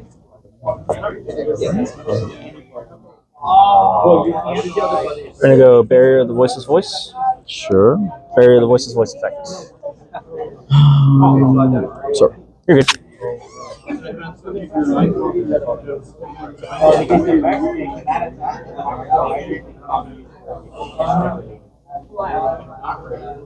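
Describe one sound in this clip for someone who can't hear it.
Playing cards tap and slide softly on a cloth mat.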